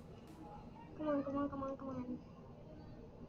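A young girl speaks briefly, close to a microphone.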